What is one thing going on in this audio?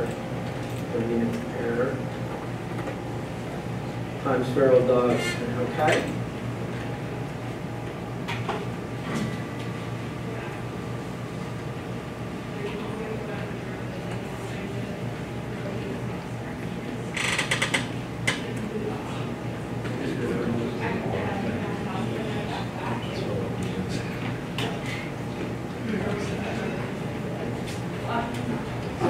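An elderly man speaks calmly at a distance.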